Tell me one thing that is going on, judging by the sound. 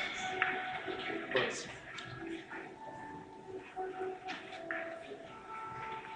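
Billiard balls click against each other on a table.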